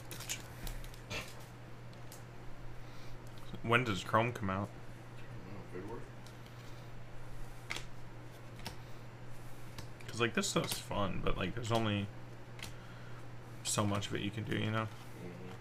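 Trading cards rustle as they are shuffled.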